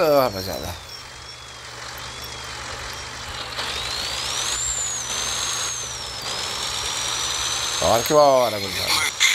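A truck engine hums steadily and rises in pitch as it speeds up.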